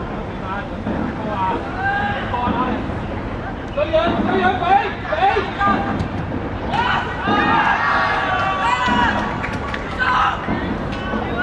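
Young players shout to each other across an open field.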